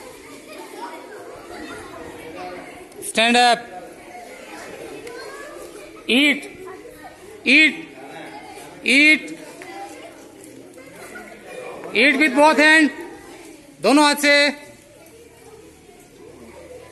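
Children chatter and murmur quietly in the background.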